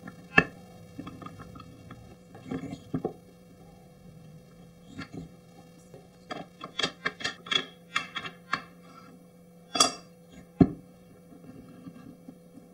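Wooden pieces knock and click together as they are slid and handled.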